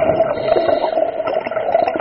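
Air bubbles gurgle underwater.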